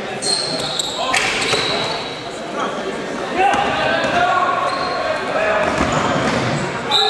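Sneakers squeak sharply on a hard gym floor.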